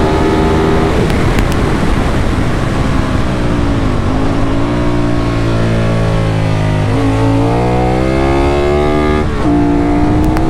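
A motorcycle engine drops in pitch as the rider shifts down, then climbs again as it speeds up.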